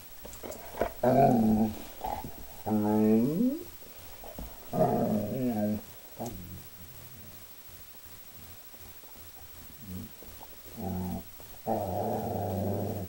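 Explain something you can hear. A dog howls and yowls in loud bursts close by.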